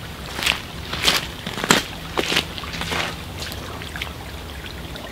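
Dry leaves crunch and rustle underfoot nearby.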